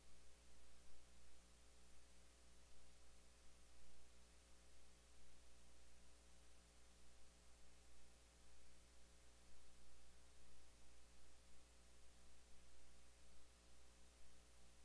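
A man speaks calmly into reporters' microphones.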